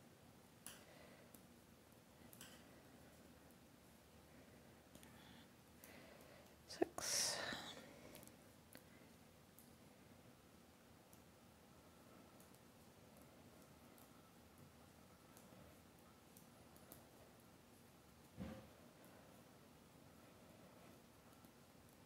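Yarn rustles as it is pulled through stitches.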